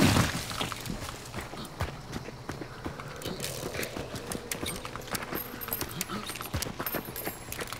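Footsteps crunch through dry leaves and brush.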